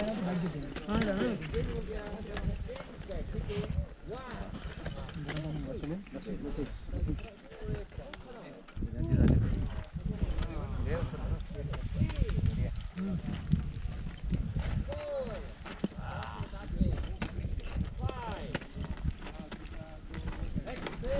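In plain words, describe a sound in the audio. Several men and women talk in the open nearby.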